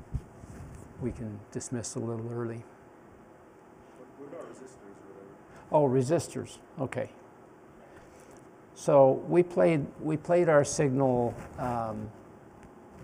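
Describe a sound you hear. An elderly man speaks calmly into a microphone in a room with a slight echo.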